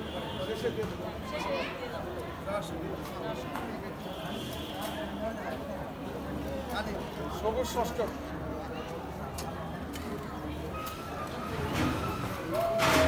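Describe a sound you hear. A group of men and women murmur and chatter in the background outdoors.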